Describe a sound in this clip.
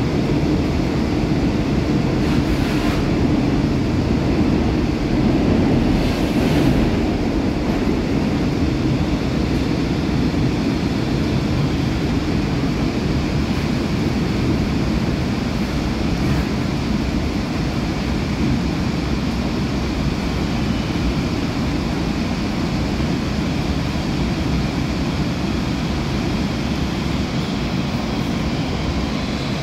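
A subway train rumbles steadily along the tracks, heard from inside the car.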